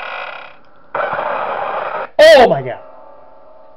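A loud, harsh screech blares suddenly and cuts off.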